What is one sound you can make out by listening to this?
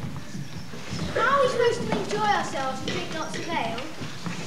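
A young boy sings clearly on a stage.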